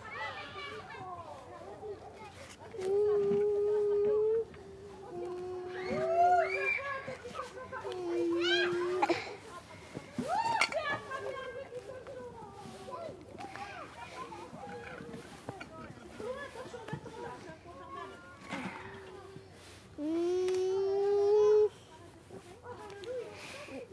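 Young children talk and call out nearby outdoors.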